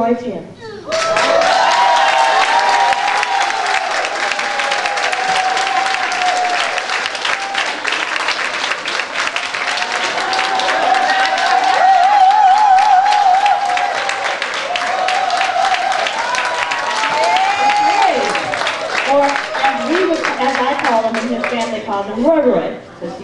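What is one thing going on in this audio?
A congregation claps in a steady rhythm.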